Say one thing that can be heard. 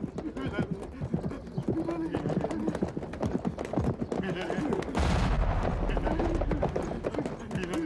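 Footsteps run over rocky ground.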